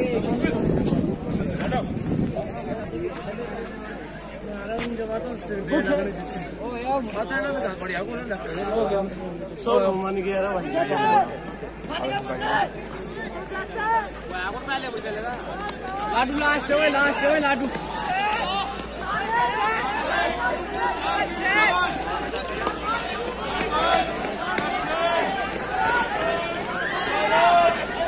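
Young men shout and cheer nearby outdoors.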